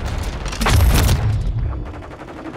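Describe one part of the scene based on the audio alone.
A loud blast booms and fades.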